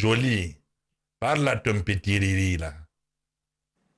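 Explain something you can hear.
A man shouts loudly and with animation close to a microphone.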